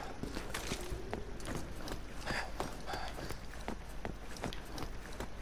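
Footsteps thud on a metal floor at a run.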